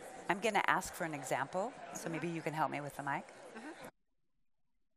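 A woman speaks into a microphone, heard over loudspeakers in a large hall.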